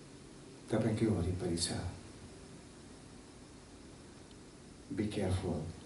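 A middle-aged man speaks calmly through a headset microphone, in short phrases with pauses.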